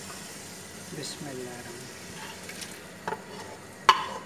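Chopped vegetables tumble from a pan into a pot.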